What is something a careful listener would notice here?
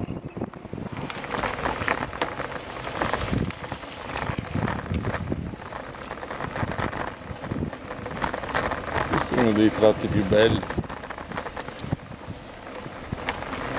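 A bicycle rattles and clatters over a bumpy dirt trail.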